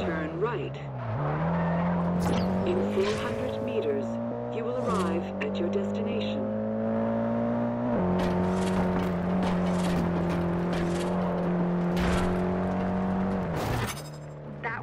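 A car engine revs hard and shifts up through the gears.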